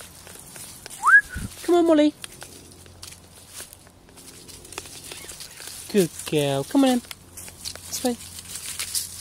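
Small dogs bark and yelp playfully.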